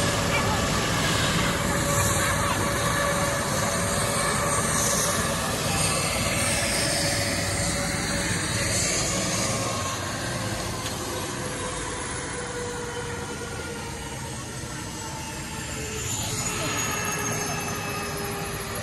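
A helicopter engine whines and its rotor thumps steadily nearby, outdoors.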